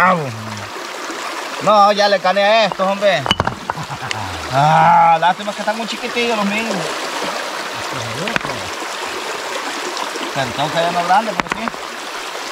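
Stones knock against each other as they are moved in the water.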